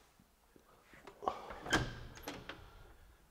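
A door lock clicks.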